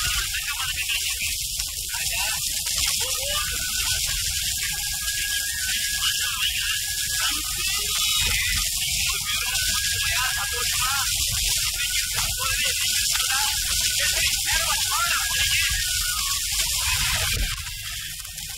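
Men talk with animation outdoors.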